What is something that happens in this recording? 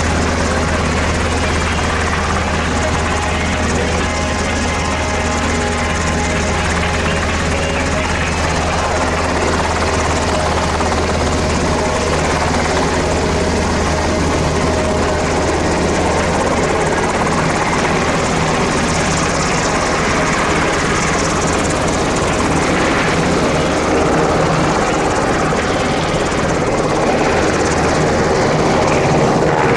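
A helicopter engine whines and roars loudly close by.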